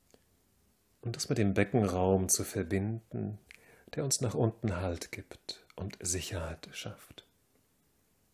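A young man speaks calmly and clearly nearby.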